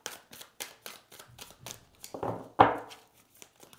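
Playing cards riffle and flick rapidly.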